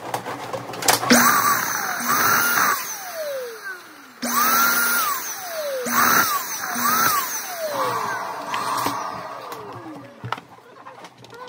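Rubber balloons squeak as hands rub and twist them.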